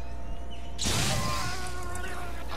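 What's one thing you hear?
A sharp crackling burst of electricity rings out.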